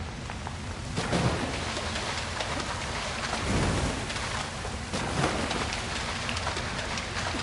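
Water splashes as footsteps wade through it.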